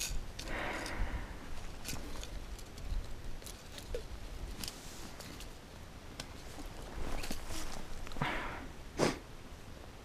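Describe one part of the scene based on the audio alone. Plastic tubes click and rattle softly in someone's hands.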